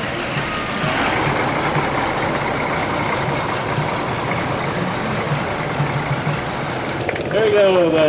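A pickup truck engine hums as the truck rolls slowly by.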